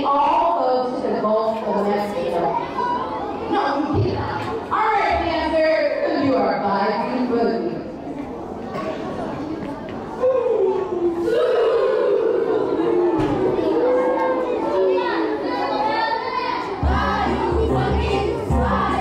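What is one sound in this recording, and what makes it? A group of children sing together in an echoing hall.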